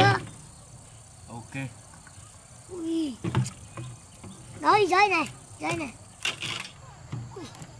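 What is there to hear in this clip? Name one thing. Plastic water jugs thump and knock on wood.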